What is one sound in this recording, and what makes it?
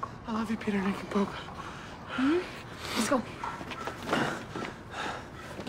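A young man talks quietly close to a microphone.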